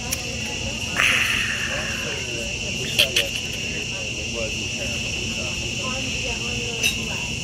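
A middle-aged man exclaims and speaks with animation close by.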